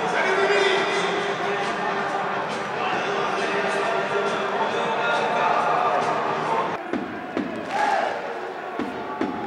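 A large crowd sings and chants loudly in an open stadium.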